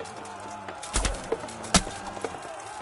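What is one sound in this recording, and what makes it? A sword strikes armour with a sharp clang.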